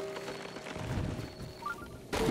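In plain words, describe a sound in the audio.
A tree crashes down with a loud thud.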